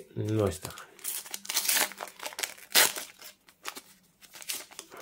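A foil wrapper crinkles and tears as a card pack is opened.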